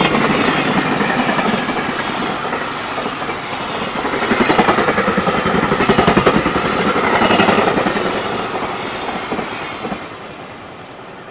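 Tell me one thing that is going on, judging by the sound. A long freight train rumbles past close by, wheels clattering rhythmically over rail joints.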